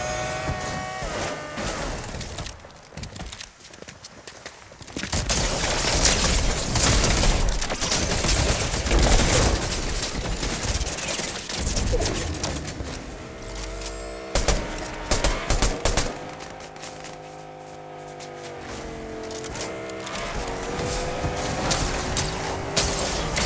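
A car engine roars as it drives over rough ground.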